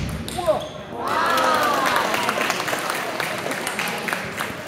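A man shouts with excitement in an echoing hall.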